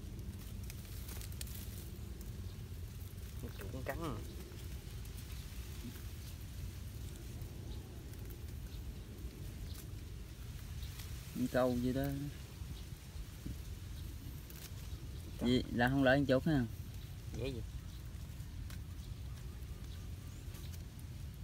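Dry leaves and stalks rustle as a hand pushes through them.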